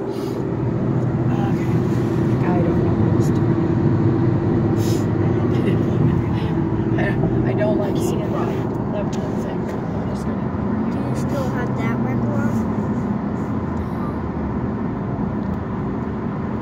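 A car engine and road noise rumble steadily inside a moving car.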